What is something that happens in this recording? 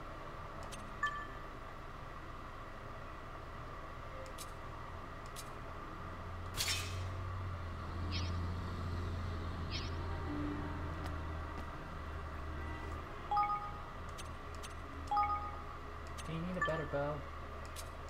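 Short electronic menu blips chime now and then.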